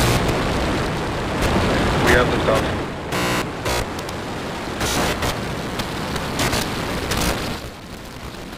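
A rocket engine roars with a deep, rumbling thunder.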